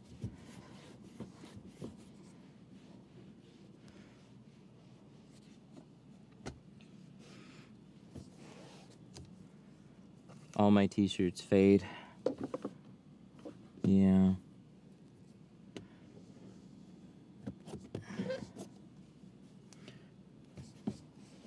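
A cloth rubs and squeaks softly against glass.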